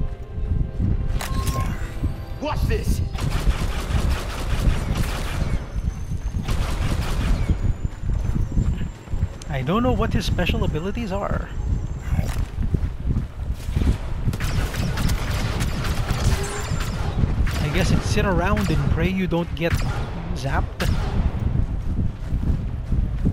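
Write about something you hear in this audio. Blaster rifles fire in rapid bursts of sharp zaps.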